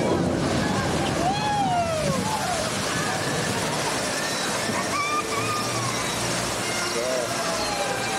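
Water churns and splashes as a boat passes.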